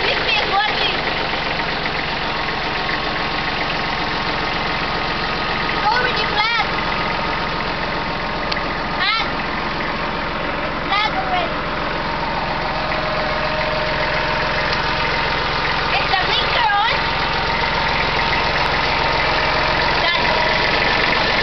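A small tractor engine runs with a steady, rumbling drone.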